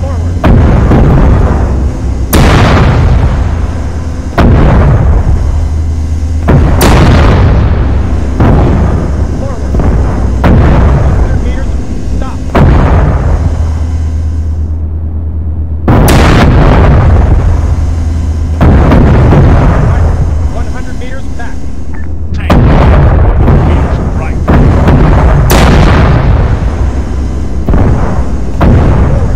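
A heavy cannon fires loud booming shots again and again.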